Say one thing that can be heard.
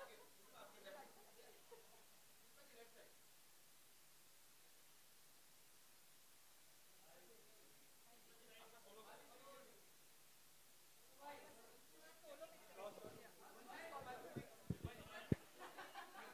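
Several adults chatter nearby in a lively crowd.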